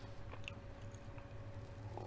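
A woman sips a drink from a mug.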